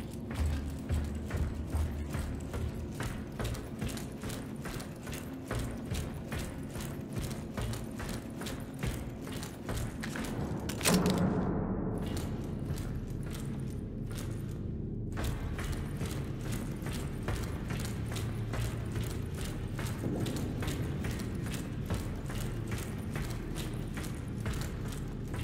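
Heavy boots walk on a metal grating.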